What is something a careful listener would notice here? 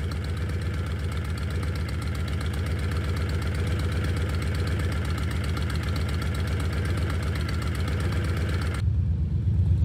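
A motorcycle engine idles close by with a steady throb.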